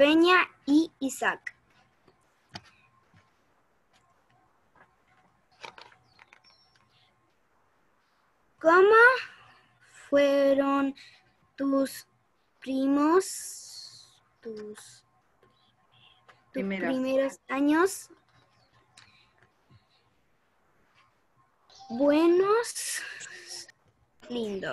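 Children speak in short, lively bursts over an online call.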